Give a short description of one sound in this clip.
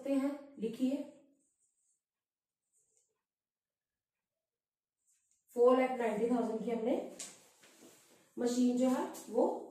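A woman talks calmly, explaining nearby.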